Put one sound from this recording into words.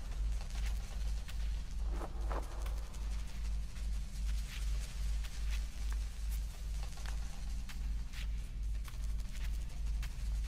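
A flock of small birds flutters and takes off.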